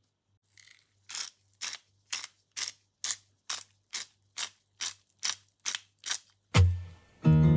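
A pepper grinder clicks in quick, even turns.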